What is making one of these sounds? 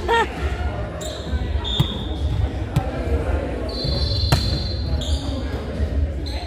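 Sneakers squeak sharply on the wooden floor.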